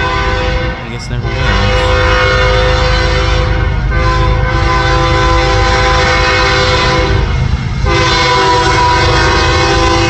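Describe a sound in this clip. A diesel freight locomotive blows a multi-chime air horn.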